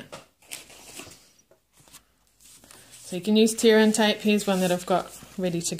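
Paper rustles and slides as hands handle it.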